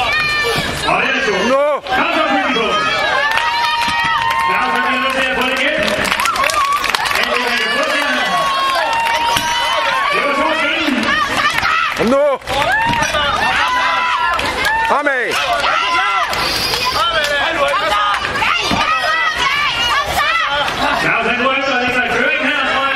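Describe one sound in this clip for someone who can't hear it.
Men nearby shout encouragement loudly.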